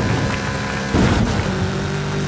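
A car lands hard with a thud after a jump.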